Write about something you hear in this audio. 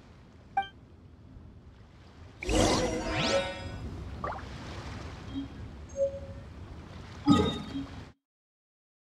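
Game music and effects play in a scene.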